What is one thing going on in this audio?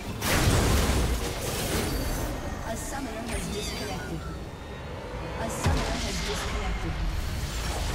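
Game spell effects and attacks crash and zap in a busy fight.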